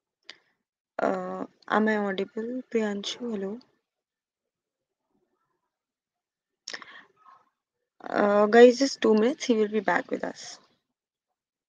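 A young woman speaks calmly over an online call, pausing between phrases.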